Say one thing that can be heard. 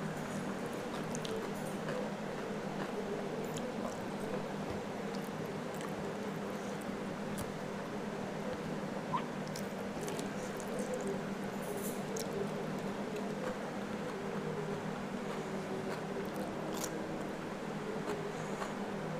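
Fingers squish and scrape food on a plate close by.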